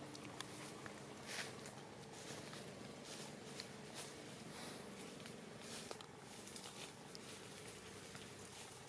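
Dry leaves rustle and crackle as a monkey walks over them.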